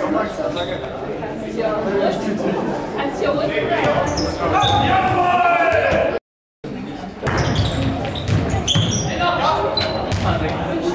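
A ball is hit and thuds in a large echoing hall.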